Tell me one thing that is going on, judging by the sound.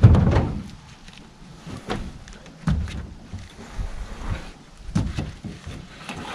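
Wood knocks and scrapes as a log is shifted.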